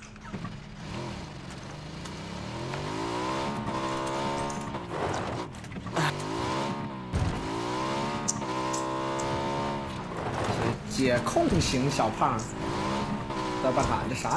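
A motorbike engine hums and revs as it rides.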